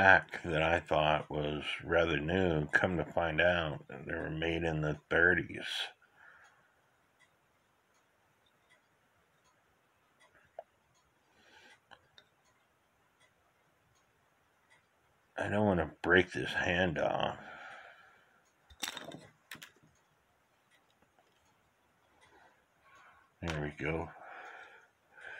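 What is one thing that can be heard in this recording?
Small wooden and metal parts tap and click softly as they are handled.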